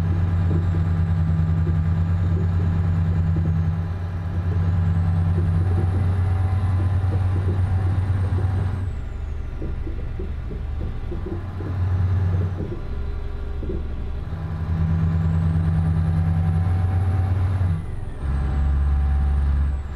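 A large diesel engine drones steadily, its pitch rising and falling.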